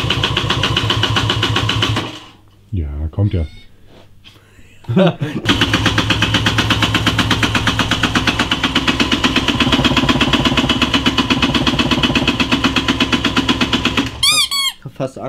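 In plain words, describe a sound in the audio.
A motorcycle engine runs with a fast, steady throbbing.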